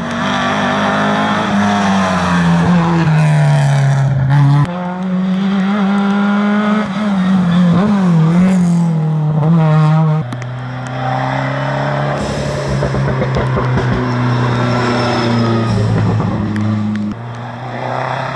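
Rally car engines roar loudly at high revs as the cars race past one after another.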